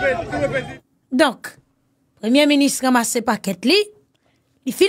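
A young woman speaks close to a microphone with animation.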